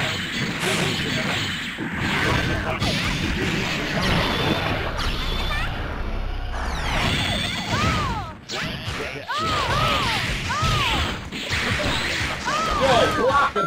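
Punches and blasts land with sharp, rapid hits.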